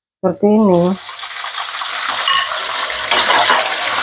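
Food sizzles loudly in a hot wok.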